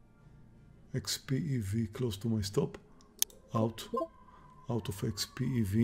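A middle-aged man talks calmly and close to a microphone.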